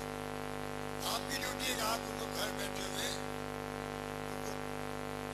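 An elderly man speaks forcefully into a microphone over loudspeakers.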